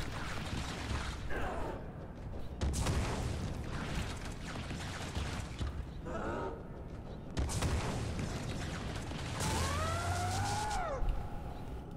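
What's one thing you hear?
Weapons swish and strike in a fast fight.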